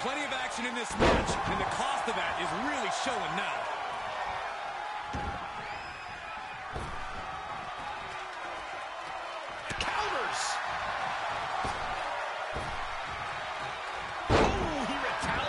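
Heavy thuds of bodies hitting a wrestling mat ring out now and then.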